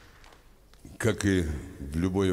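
An elderly man speaks into a microphone over loudspeakers.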